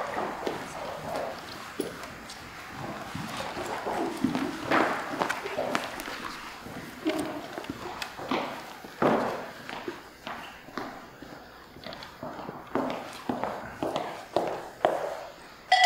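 Footsteps tap on a hard floor as several people walk about.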